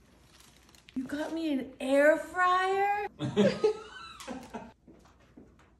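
A middle-aged woman exclaims loudly with excitement, close by.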